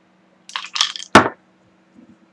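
A glass is set down on a hard table with a knock.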